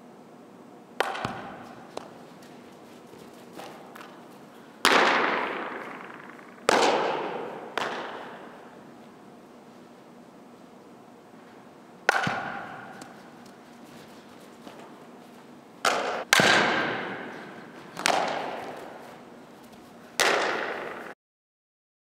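A ball smacks into a leather glove again and again, echoing in a large hall.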